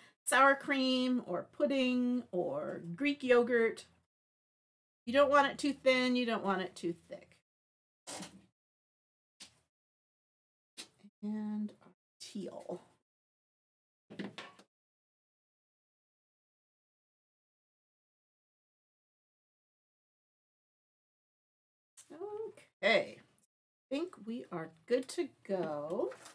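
A woman talks calmly through a microphone, with pauses.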